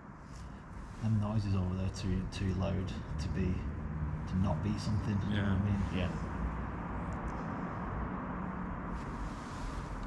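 A man speaks quietly and with animation close by.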